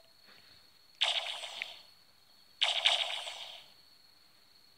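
A shimmering magical whoosh bursts from a game's small speaker, twice.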